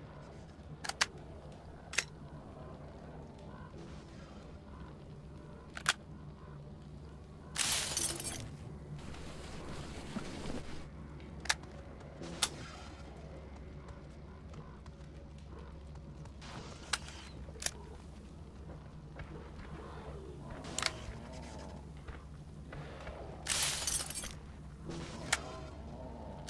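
Metal gun parts click and clack as they are swapped.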